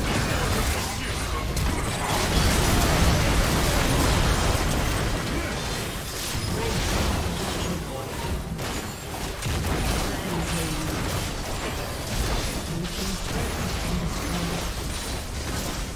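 Game spells crackle and explode in a battle.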